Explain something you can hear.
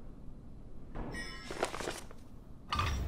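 A heavy book creaks open.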